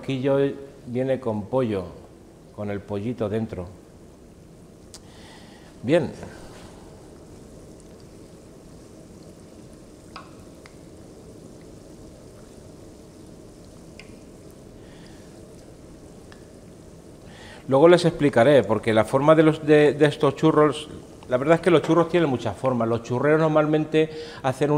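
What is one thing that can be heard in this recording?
A middle-aged man talks calmly to the listener, close by.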